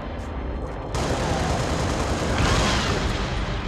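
Rifle fire rattles in bursts.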